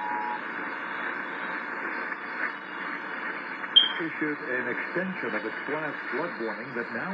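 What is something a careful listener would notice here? A small radio hisses with static.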